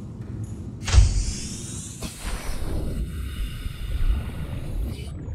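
Water splashes and bubbles.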